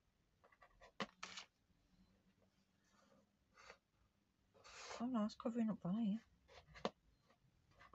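Small wooden pieces tap lightly onto paper.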